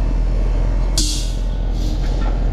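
Gas hisses sharply from a refrigerant tank valve.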